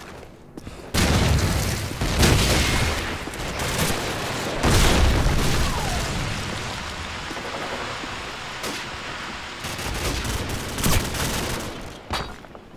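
A rifle fires in sharp bursts.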